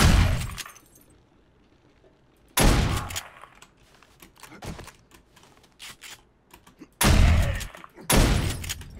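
Gunshots fire loudly and echo in an enclosed space.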